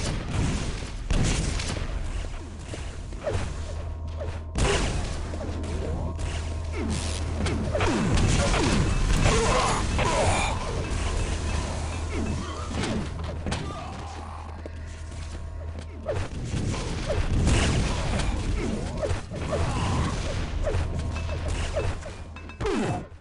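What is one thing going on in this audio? Gunfire and explosions from a video game ring out in quick bursts.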